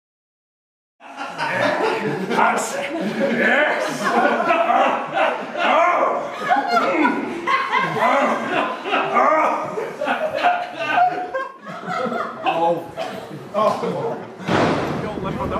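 Several young women laugh and chatter excitedly close by.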